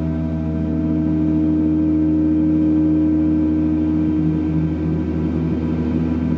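A large gong hums with a deep, steady, shimmering drone that fills an echoing room.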